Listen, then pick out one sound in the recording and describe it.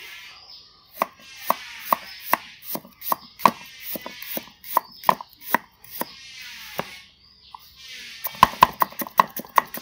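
A knife chops through a carrot onto a wooden board with sharp, quick knocks.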